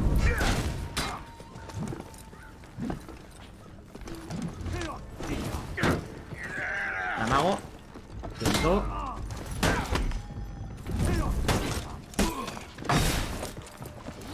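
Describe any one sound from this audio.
Warriors grunt and shout as they fight.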